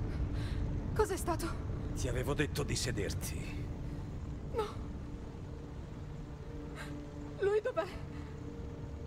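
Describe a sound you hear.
A young woman speaks anxiously, then cries out in distress.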